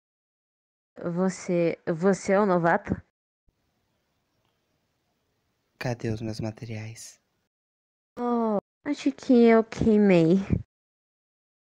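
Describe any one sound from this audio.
A young girl speaks in an animated, cartoonish voice.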